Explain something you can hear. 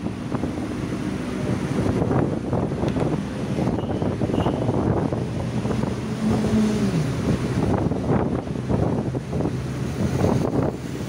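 Traffic rushes past nearby.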